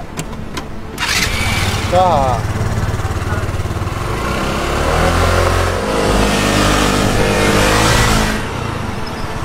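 A motor scooter roars past on a road.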